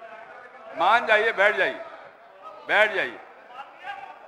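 An elderly man speaks loudly and firmly into a microphone in a large echoing hall.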